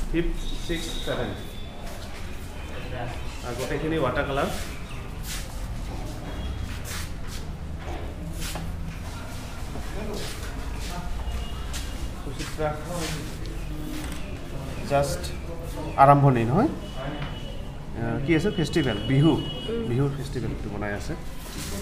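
Young people talk quietly nearby in a room.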